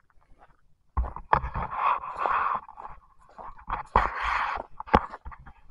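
A man breathes heavily close to the microphone.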